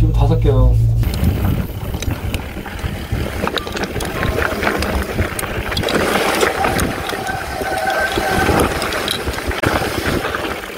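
Wind rushes past a bicycle rider moving fast.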